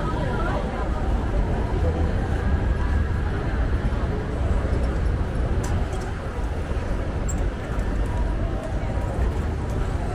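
Footsteps patter on pavement.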